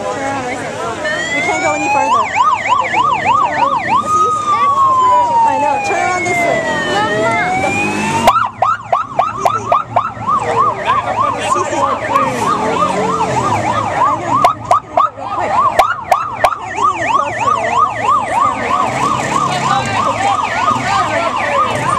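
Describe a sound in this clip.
Police sirens wail and yelp close by.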